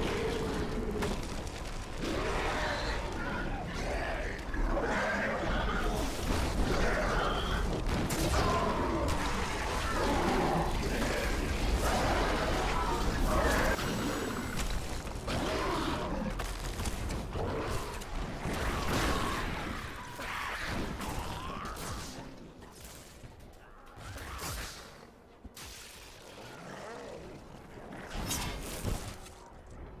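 Magic spells crackle and blast in bursts.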